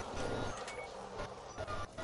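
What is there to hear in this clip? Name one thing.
A ray gun fires with a crackling zap.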